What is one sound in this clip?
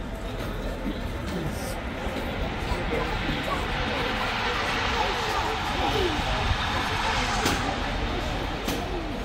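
A crowd of people chatters outdoors, growing louder.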